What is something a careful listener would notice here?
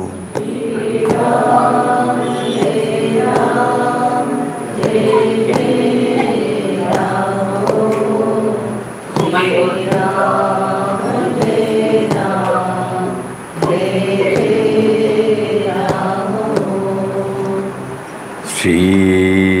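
An elderly man chants slowly into a microphone.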